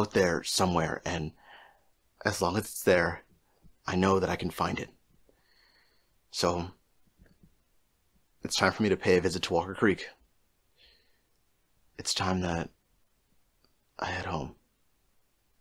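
A young man talks calmly and close to the microphone, with pauses.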